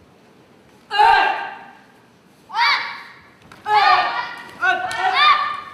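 Young men shout sharp, loud cries in an echoing hall.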